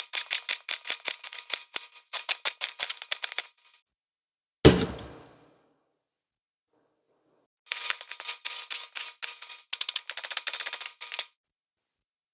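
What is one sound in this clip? A knife chops rapidly on a plastic cutting board.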